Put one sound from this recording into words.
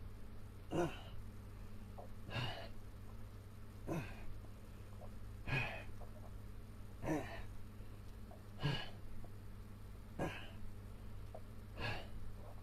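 An elderly man grunts and breathes out hard with effort at a steady, regular pace.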